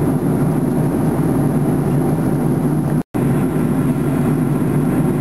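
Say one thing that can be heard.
An airplane's jet engines roar in a steady, low drone.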